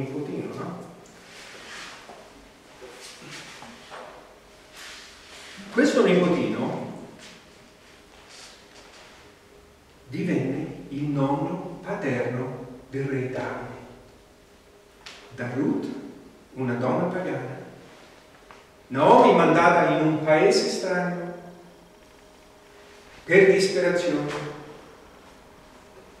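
An older man speaks with animation through a microphone, pausing often.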